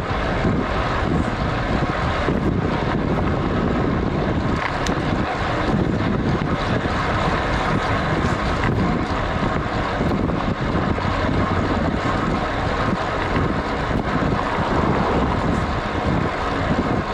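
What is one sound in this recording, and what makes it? Wind rushes loudly past a cyclist descending fast on a road bike.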